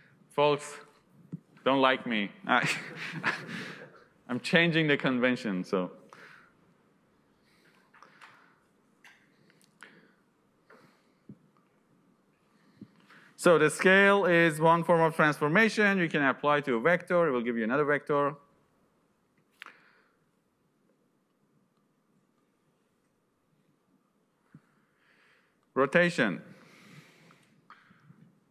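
A young man lectures calmly through a microphone, with pauses.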